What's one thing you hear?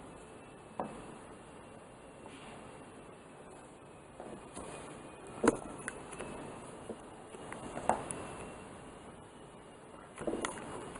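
A handheld phone knocks lightly against a plastic stand.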